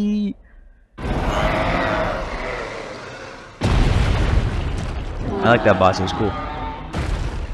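Heavy boulders crash down with a deep rumble.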